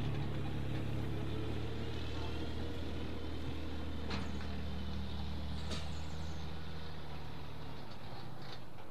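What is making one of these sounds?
A small diesel engine idles with a steady low rumble.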